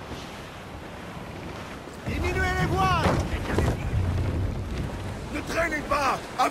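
Waves wash against a sailing ship's hull.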